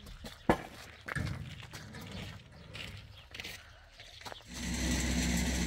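Footsteps scuff on concrete.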